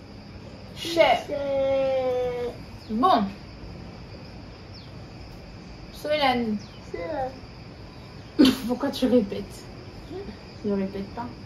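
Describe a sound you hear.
A young boy reads out slowly.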